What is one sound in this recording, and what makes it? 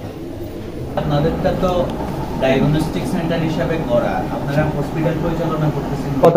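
A man speaks calmly to others nearby.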